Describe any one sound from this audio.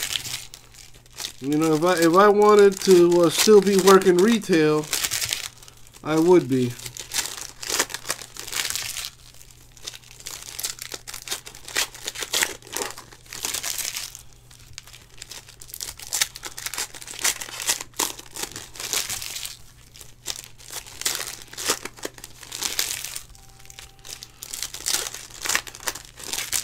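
Foil wrappers crinkle and tear as packs are ripped open.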